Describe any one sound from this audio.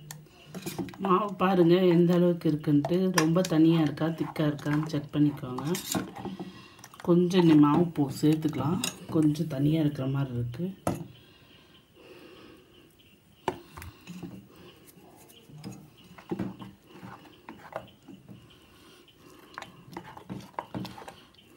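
Wet batter squelches as a hand mixes it in a metal bowl.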